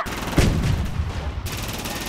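A shell bursts in water with a splash.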